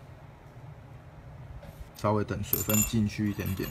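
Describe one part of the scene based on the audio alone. A metal tool clinks softly against other metal tools on a hard surface.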